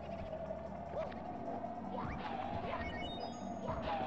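A game enemy bursts with a puff and a chime of coins.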